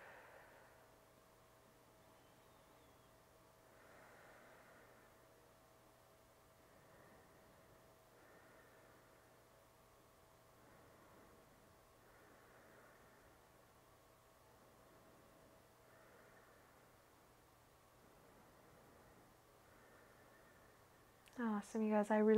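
A woman breathes slowly and deeply.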